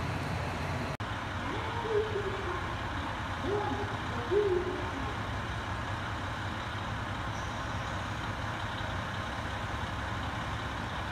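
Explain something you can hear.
A diesel train engine idles with a low hum.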